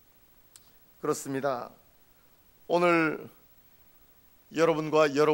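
A middle-aged man speaks slowly and solemnly into a microphone, in short phrases with pauses.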